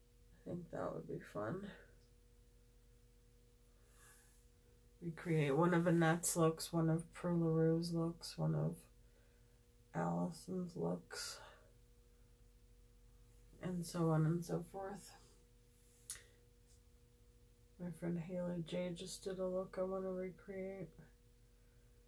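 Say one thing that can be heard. A woman talks calmly and close by, in short bursts with pauses.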